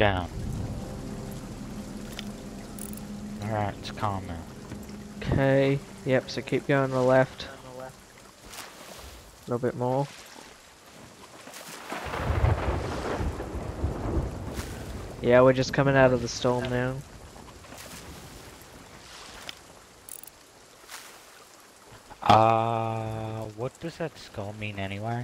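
Waves splash against a boat.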